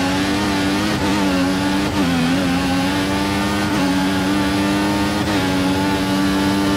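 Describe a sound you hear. A racing car engine screams at high revs, dipping briefly in pitch at each gear change.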